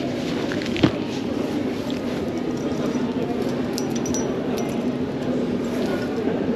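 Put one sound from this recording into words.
An electric scooter motor hums steadily.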